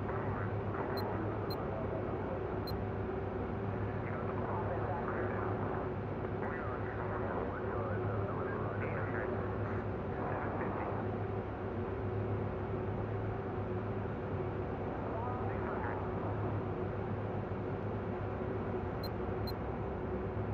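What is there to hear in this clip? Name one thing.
Short soft clicks sound as a game menu selection changes.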